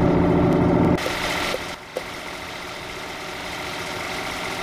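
A truck engine rumbles more softly from outside.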